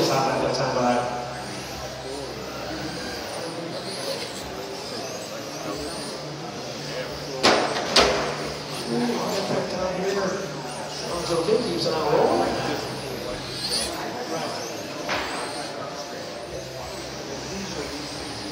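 Small remote-controlled cars whine and buzz as they race around a track in a large echoing hall.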